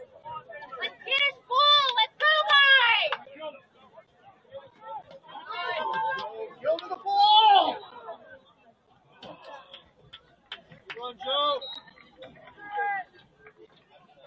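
Spectators shout and cheer loudly in bursts.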